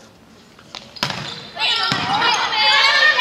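A volleyball is struck with a hand.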